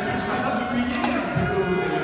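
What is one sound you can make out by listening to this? Metal utensils clink on trays.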